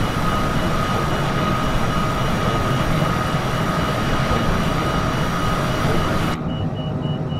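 A jet's engines roar steadily outside the aircraft.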